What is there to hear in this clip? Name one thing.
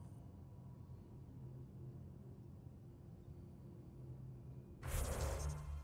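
A low engine hum drones steadily.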